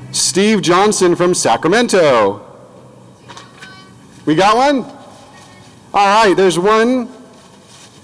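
A man speaks into a microphone over a loudspeaker outdoors, in short bursts.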